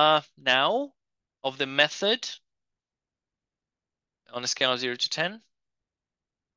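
A man speaks calmly through a microphone, as if explaining.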